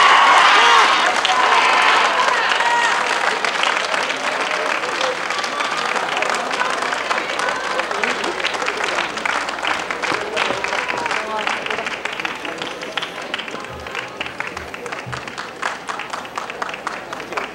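A crowd claps and chatters.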